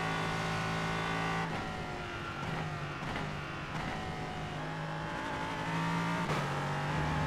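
A racing car engine roars at high revs, its pitch dropping and climbing.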